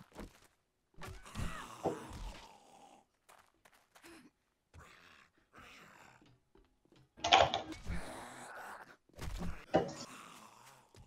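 A spiked club thuds heavily against a zombie.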